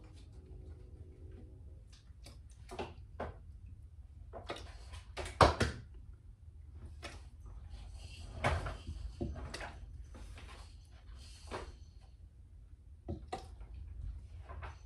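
Juice drips and splashes into a bowl as fruit is squeezed.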